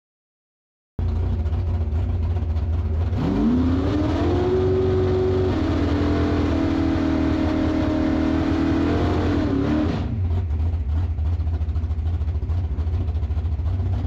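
A race car engine idles with a loud, rough rumble close by.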